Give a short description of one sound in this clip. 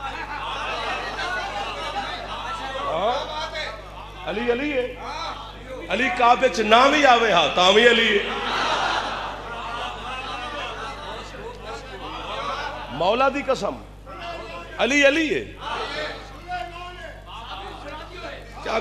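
A young man speaks passionately into a microphone over loudspeakers, his voice rising into sung, wailing phrases in a reverberant space.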